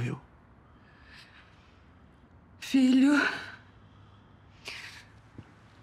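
A middle-aged woman sobs and sniffs quietly.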